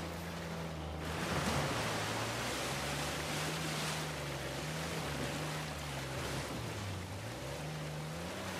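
Rushing water splashes around a jeep wheeling through a river.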